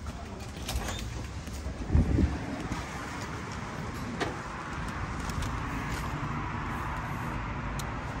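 An automatic door's motor whirs as the door swings.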